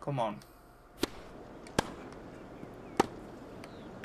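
A tennis ball is hit sharply with a racket.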